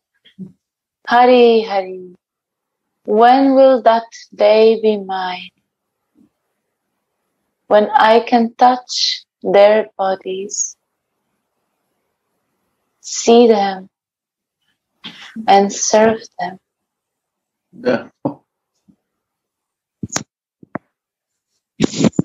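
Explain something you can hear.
A young woman sings in phrases through an online call.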